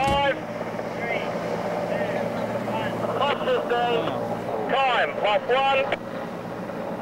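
A man speaks into a walkie-talkie nearby.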